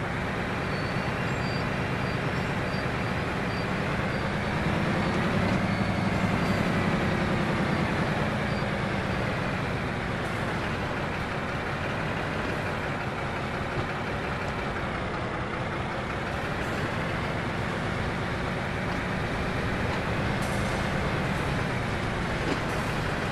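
A train's wheels rumble and clatter on the rails.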